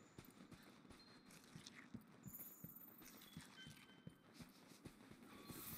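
Heavy footsteps thud steadily on sand.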